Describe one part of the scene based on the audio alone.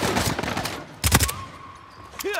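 A heavy rifle shot booms once.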